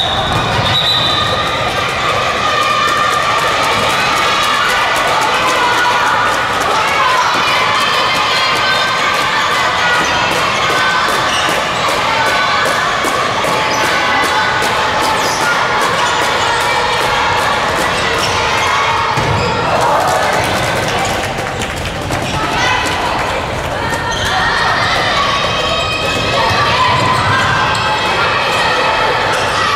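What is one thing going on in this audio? A crowd of young women cheers and chants loudly in a large echoing hall.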